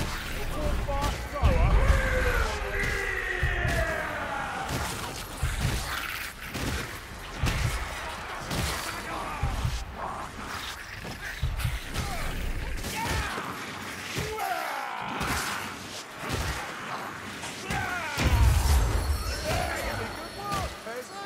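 Weapons strike and thud against flesh in rapid blows.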